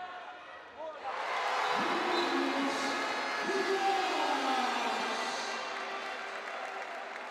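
A crowd cheers loudly in an echoing hall.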